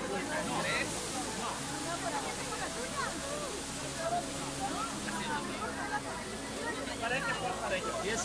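A crowd murmurs around outdoors.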